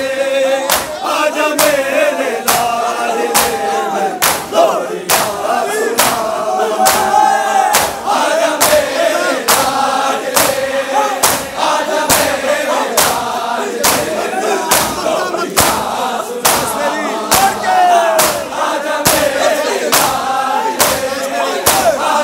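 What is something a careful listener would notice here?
A large crowd of men beats their chests in a steady, loud rhythm.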